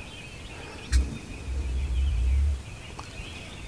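A turkey booms with a deep, low drumming close by.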